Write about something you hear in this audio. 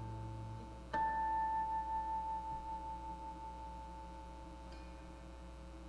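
An electric guitar note rings out and slowly fades.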